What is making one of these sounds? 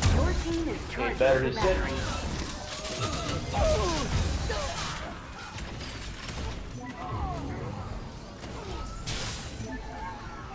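Electric energy weapons fire in sharp crackling bursts.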